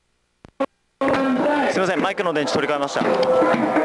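A large crowd of men and women shouts and chants outdoors.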